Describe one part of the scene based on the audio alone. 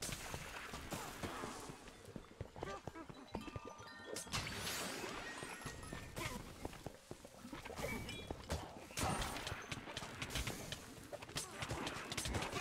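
Explosions burst with sharp crackling blasts.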